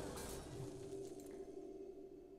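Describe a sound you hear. A magical blast bursts with a ringing shimmer that fades.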